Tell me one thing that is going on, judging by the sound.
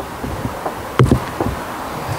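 A microphone thumps as it is handled.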